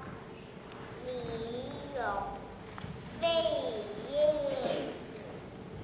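A young girl recites in a high, sing-song voice close to a microphone.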